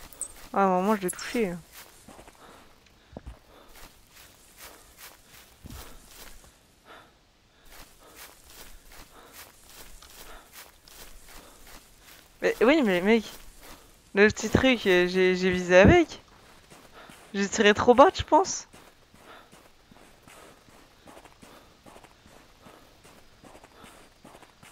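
Footsteps crunch steadily through snow and undergrowth.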